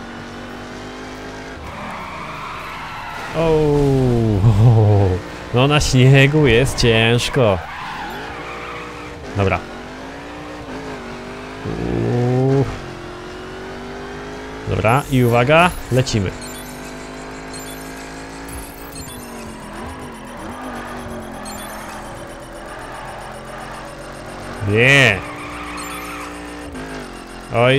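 A racing car engine revs and roars, rising and falling in pitch.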